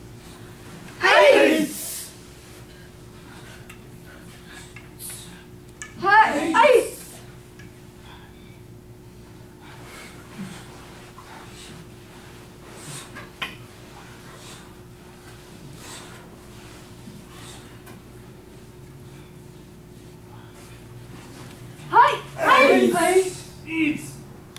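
A group of children and adults shout out together in short loud bursts.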